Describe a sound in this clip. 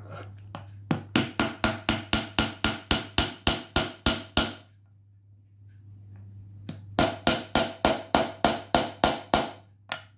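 A hammer taps rapidly and steadily on a metal punch.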